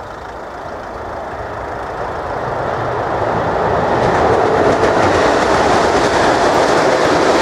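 An electric train approaches and rumbles across a level crossing, growing louder.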